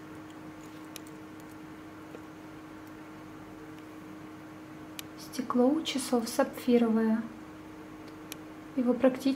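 A metal watch bracelet clinks softly.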